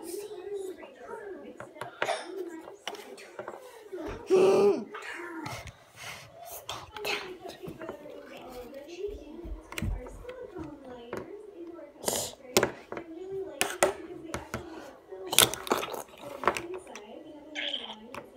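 Plastic toy pieces knock and clatter against a wooden table.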